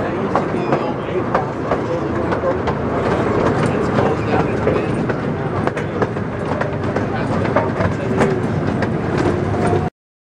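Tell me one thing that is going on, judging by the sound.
An open vehicle rattles and clanks over a bumpy track.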